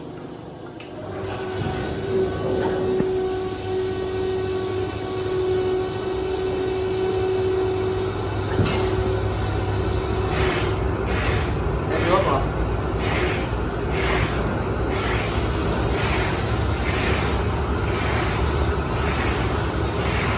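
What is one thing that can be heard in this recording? Electric fans hum steadily.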